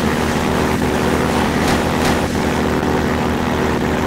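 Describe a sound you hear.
A helicopter's gun fires rapid shots.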